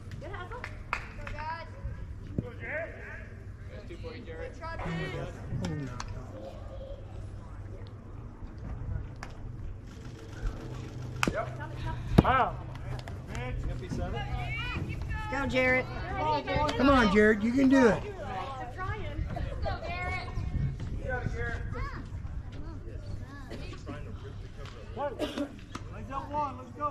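Spectators shout and cheer outdoors.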